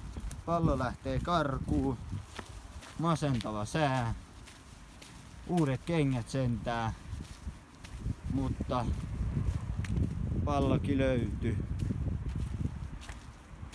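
Footsteps crunch on gravel and a dirt path.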